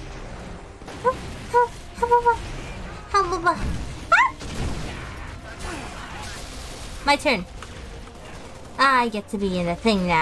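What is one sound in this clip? A young woman talks animatedly into a microphone, her voice rising and falling.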